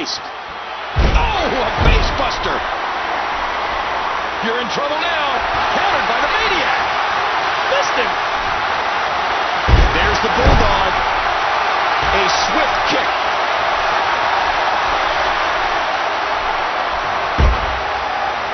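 Bodies slam heavily onto a wrestling mat, several times.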